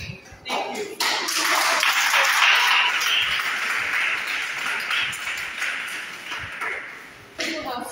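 A group of children chant together in a room.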